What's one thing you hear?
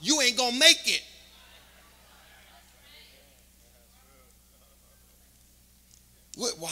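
A man speaks loudly and with animation through a microphone in a large hall.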